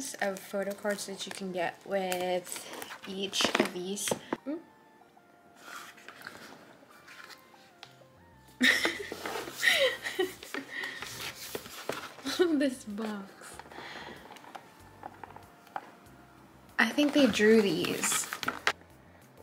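Cardboard and plastic packaging rustle and tap as it is handled.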